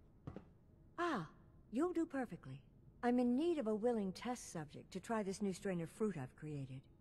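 An elderly woman speaks warmly and clearly, close by.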